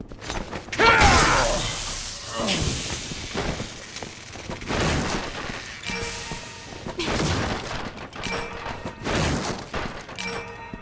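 Wooden crates smash and splinter with heavy blows.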